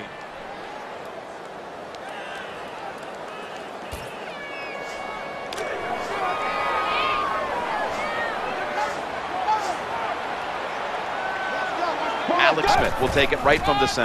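A large crowd cheers and roars steadily, growing louder.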